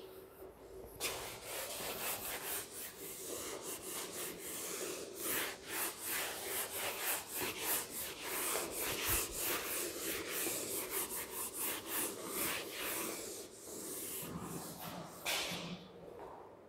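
A duster rubs across a whiteboard in quick, scratchy strokes.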